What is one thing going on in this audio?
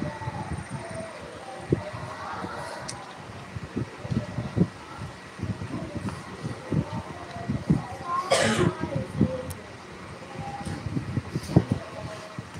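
Electric fans whir steadily.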